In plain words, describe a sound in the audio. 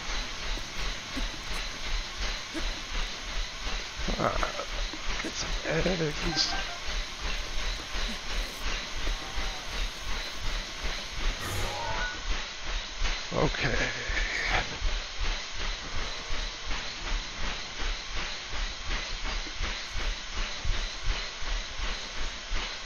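Footsteps thud steadily on a running treadmill.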